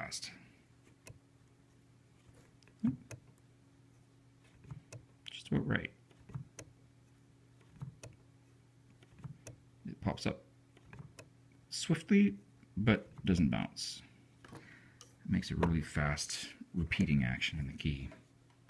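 Wooden piano keys and levers knock and click.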